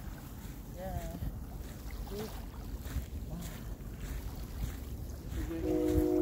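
Small waves lap gently at a pebbly shore.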